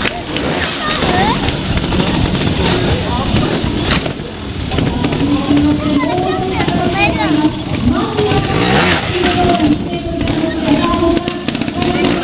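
Motorcycle tyres thud onto wooden crates.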